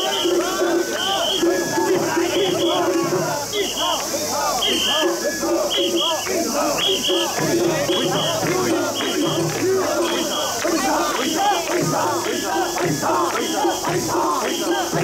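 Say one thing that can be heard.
A large crowd of men chant and shout rhythmically close by, outdoors.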